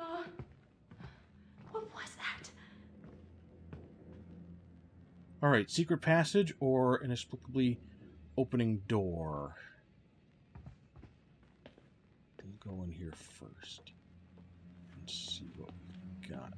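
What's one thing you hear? Footsteps creak slowly across a wooden floor.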